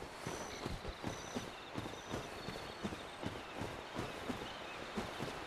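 Footsteps crunch steadily over leaves and undergrowth.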